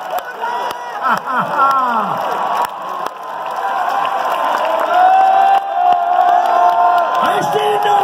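A large crowd cheers and sings loudly in a vast open stadium.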